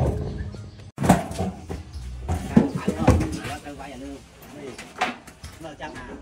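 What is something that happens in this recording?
A corrugated metal roof sheet clatters and bangs as it is lifted.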